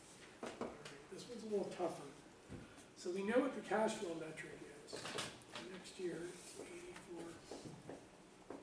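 A man speaks calmly in a room, as if teaching.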